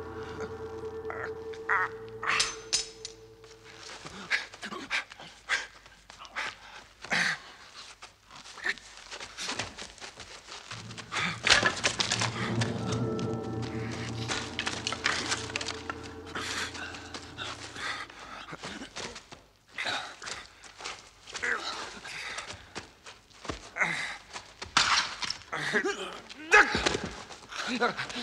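Blows and scuffling thud as two men fight.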